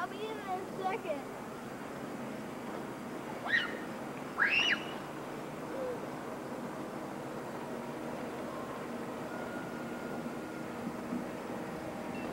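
A motorboat engine drones steadily in the distance.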